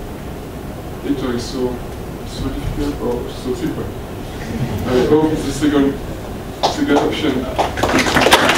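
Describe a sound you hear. A man speaks to an audience, heard through a microphone.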